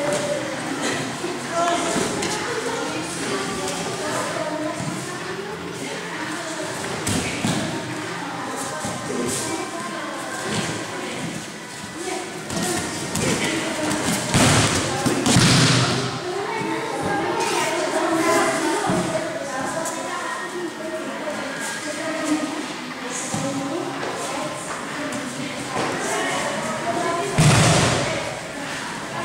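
Bare feet shuffle and slap on a mat.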